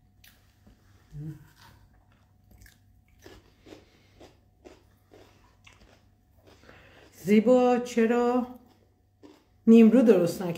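An elderly woman chews and smacks her lips while eating.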